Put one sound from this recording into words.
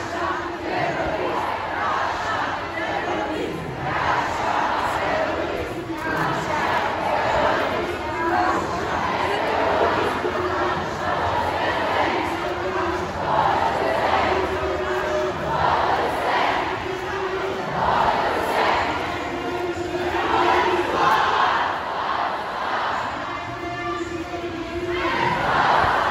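A crowd of men and women chants loudly in rhythm outdoors.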